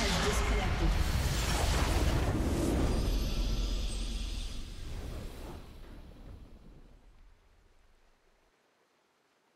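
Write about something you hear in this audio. Triumphant game music plays loudly and then fades away.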